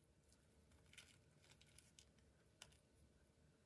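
A cutlet is set down on a plate with a soft knock.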